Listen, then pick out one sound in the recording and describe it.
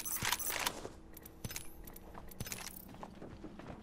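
Interface clicks and chimes sound as items are picked up.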